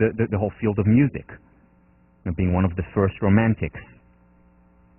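A man lectures with animation through a headset microphone in a large echoing hall.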